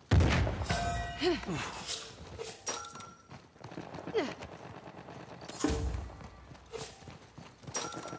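Footsteps run up stone steps.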